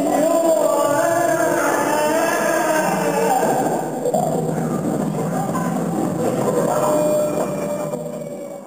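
A small instrument plays soft, wavering musical notes in a large echoing hall.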